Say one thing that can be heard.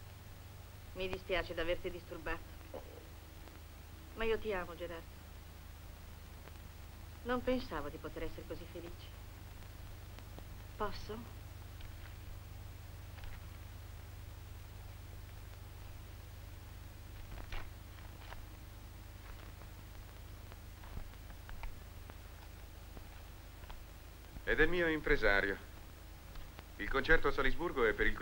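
A young woman speaks calmly and playfully nearby.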